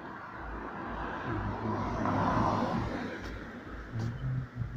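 A car drives past on a street and fades away.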